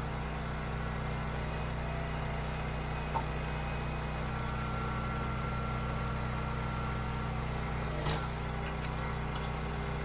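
A petrol engine runs steadily at a low hum.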